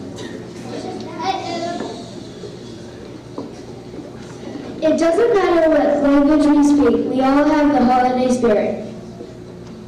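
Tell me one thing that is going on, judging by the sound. A choir of children sings in an echoing hall.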